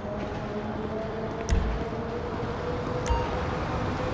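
Footsteps fall on pavement.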